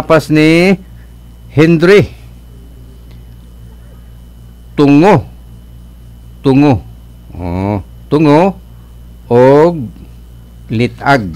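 An older man speaks into a close microphone in short, drawn-out bursts separated by pauses.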